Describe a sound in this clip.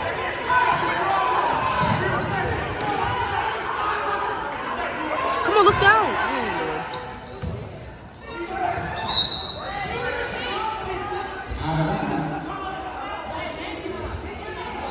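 Basketball shoes squeak sharply on the hardwood floor.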